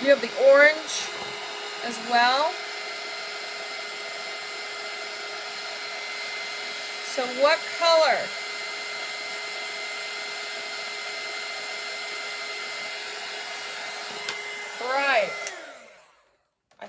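A heat gun blows with a steady whirring roar.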